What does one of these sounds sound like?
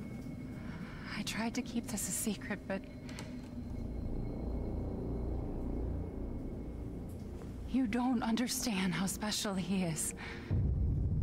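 A woman speaks softly and calmly.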